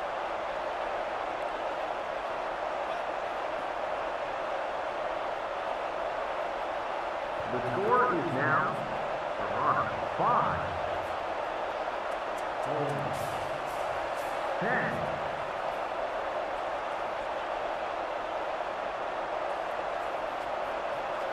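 A large crowd murmurs and cheers steadily in the distance.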